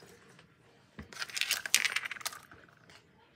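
Plastic keychains clatter and rustle as they are handled and set down on a wooden surface.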